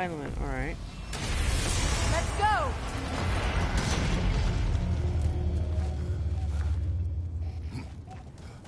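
A burst of fire roars loudly and then dies down.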